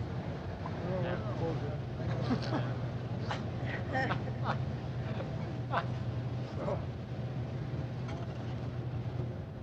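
A group of men laugh heartily nearby.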